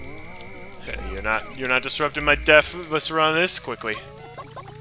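Bright chimes and jingles ring out in a game.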